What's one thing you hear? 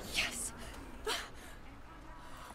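A young woman lets out a sigh of relief.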